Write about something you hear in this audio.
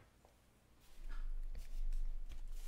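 A hand brushes and rustles close by.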